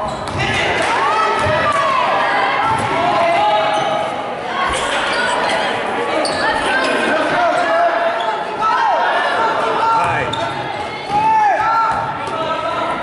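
Sneakers squeak sharply on a hard court in a large echoing gym.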